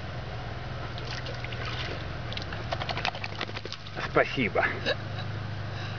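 A dog splashes through shallow water.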